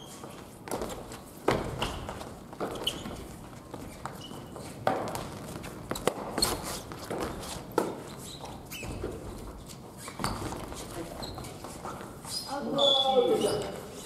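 Shoes squeak on a wooden floor.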